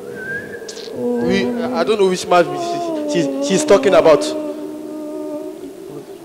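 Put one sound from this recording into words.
A young man speaks with animation through a microphone.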